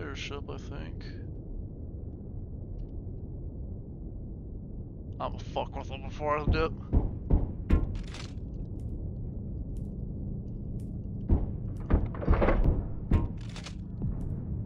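A spacecraft engine rumbles steadily.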